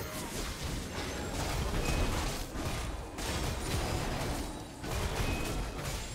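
Video game combat effects crackle and clash.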